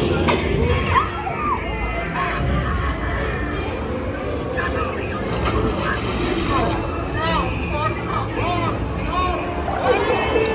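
Men's voices shout and sing with animation through loudspeakers.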